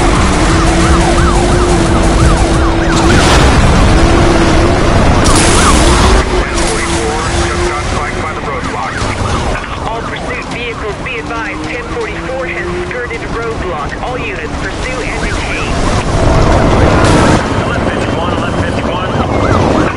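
Metal crashes and scrapes as cars collide.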